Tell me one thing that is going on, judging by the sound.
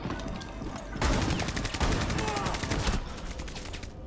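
A loud blast booms.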